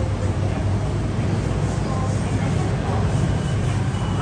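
People murmur and chatter nearby in a busy crowd.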